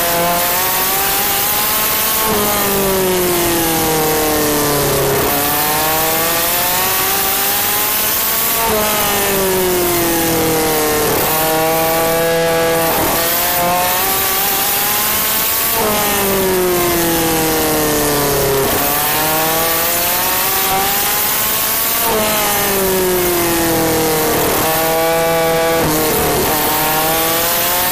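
A kart engine whines loudly close by, its pitch rising and falling as it speeds up and slows through the corners.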